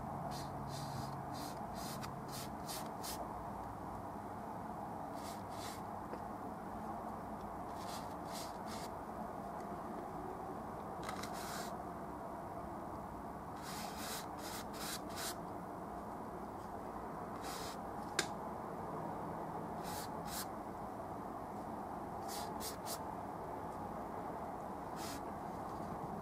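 A bristle brush scrapes and swishes across a canvas in short strokes.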